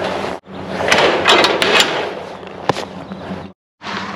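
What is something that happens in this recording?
A metal trailer ramp clanks and rattles.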